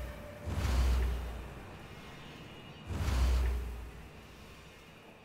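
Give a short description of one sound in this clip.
A deep whooshing thud sounds as a game building is placed.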